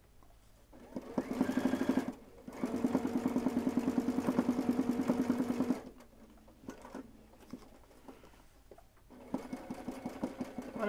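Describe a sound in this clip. A sewing machine stitches in fast, rapid bursts.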